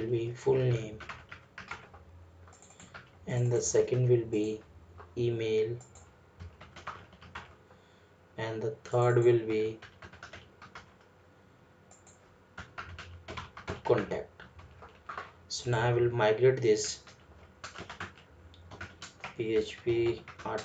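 Keys clatter as someone types on a keyboard.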